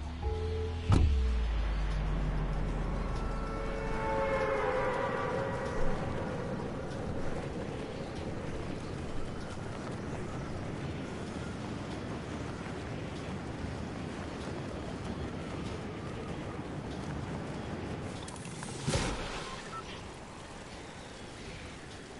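Wind rushes steadily past a figure in freefall.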